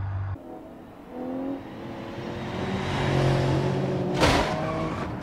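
Car engines roar as cars speed closer.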